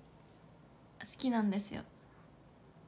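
A young woman speaks briefly and brightly close to a microphone.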